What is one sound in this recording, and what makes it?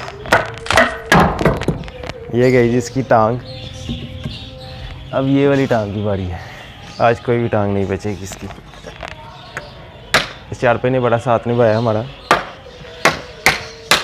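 A brick knocks sharply against a wooden handle.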